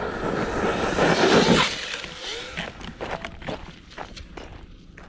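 A toy car lands and tumbles in a pile of wood chips.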